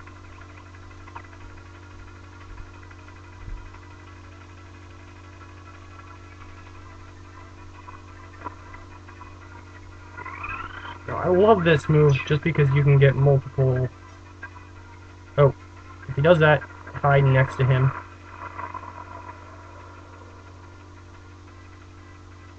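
Chiptune-style game music plays steadily.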